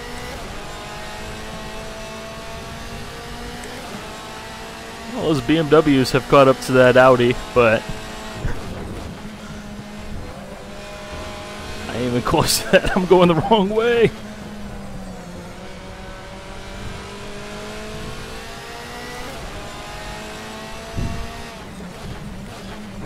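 A racing car engine roars steadily, rising in pitch and dropping with each gear change.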